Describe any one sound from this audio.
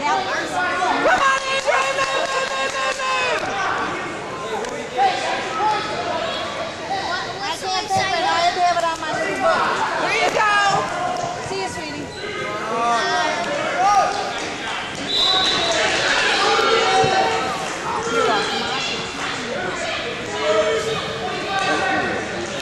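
A crowd cheers and shouts loudly nearby.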